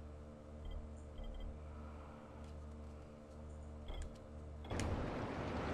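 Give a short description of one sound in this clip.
Soft electronic blips sound as a menu selection moves.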